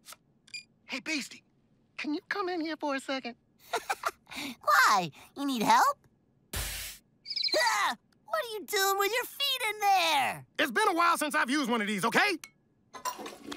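A man speaks with animation in a high, nasal cartoon voice.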